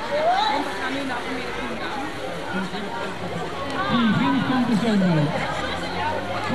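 A crowd of children chatter and call out excitedly outdoors.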